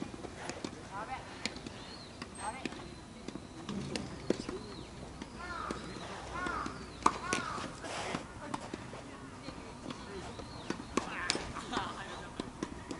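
Tennis shoes squeak on the court surface.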